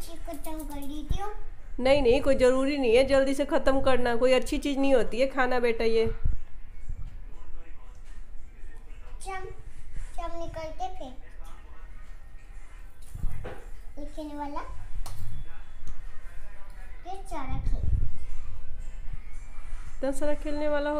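A young girl talks and sings in a high voice close by.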